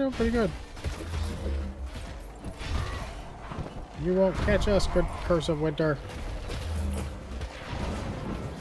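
Magic blasts crackle and boom.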